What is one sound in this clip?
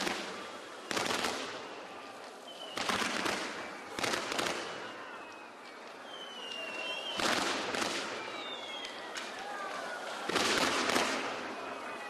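Fireworks explode with loud bangs that echo away.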